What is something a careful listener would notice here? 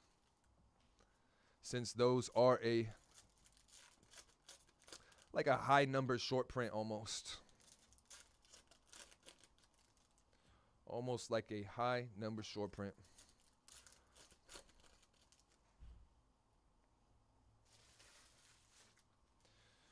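Cardboard packs rustle and slide as hands sort them.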